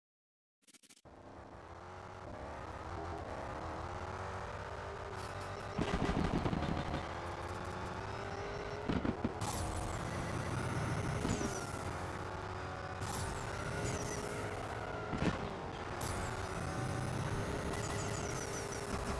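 A sports car engine roars as the car accelerates at high speed.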